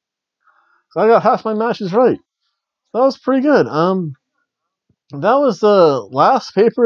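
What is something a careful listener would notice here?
A middle-aged man speaks with animation, close to the microphone.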